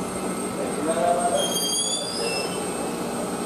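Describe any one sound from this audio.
A train's brakes squeal as it comes to a stop.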